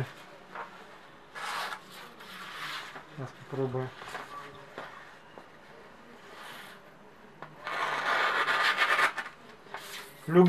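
A knife slices through paper.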